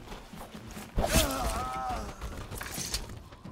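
A blade slashes through flesh with a wet thud.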